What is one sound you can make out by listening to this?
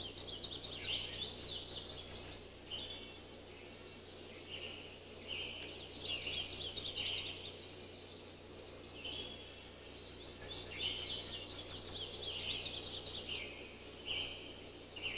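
House finches chirp and twitter.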